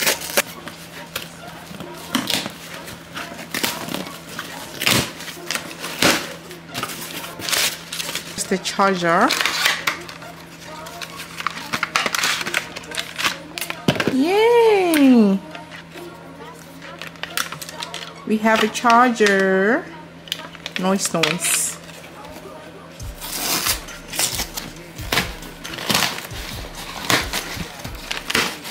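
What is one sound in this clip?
Packing tape tears off a cardboard box.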